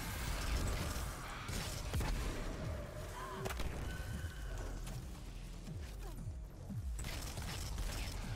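Gunfire from a video game cracks in quick bursts.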